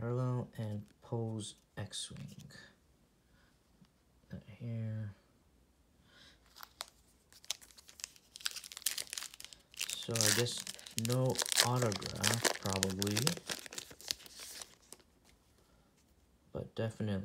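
Trading cards rustle and slap softly as hands sort them.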